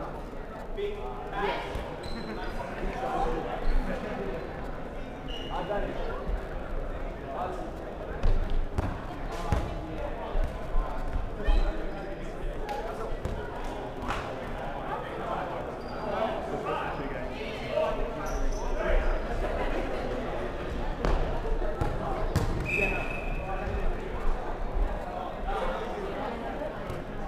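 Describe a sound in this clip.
Young players shout and call out across an echoing hall.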